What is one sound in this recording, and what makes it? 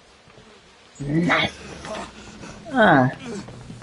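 A young man exclaims and laughs loudly into a close microphone.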